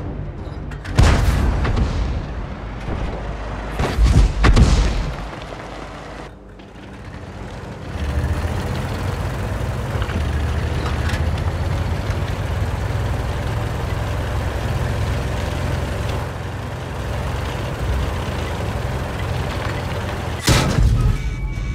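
A cannon fires with loud, sudden booms.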